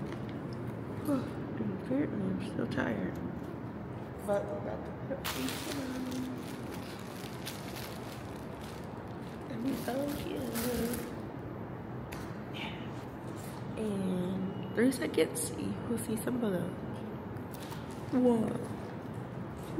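A young woman talks casually and close by.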